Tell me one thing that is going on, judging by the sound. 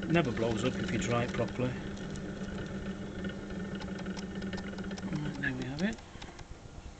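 A potter's wheel motor hums steadily, then winds down.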